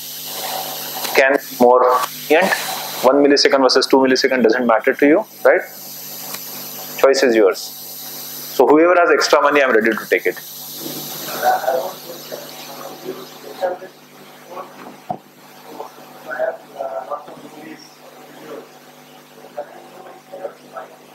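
A man speaks steadily to an audience in a room that echoes.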